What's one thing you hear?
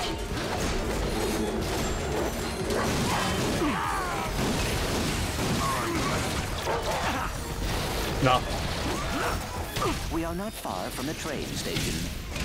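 Blasters fire in rapid bursts.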